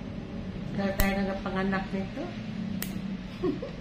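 Nail clippers snip sharply at a toenail.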